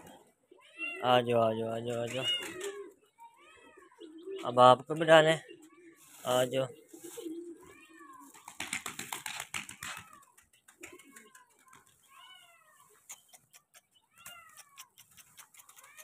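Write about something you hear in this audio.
Pigeons flap their wings in quick bursts.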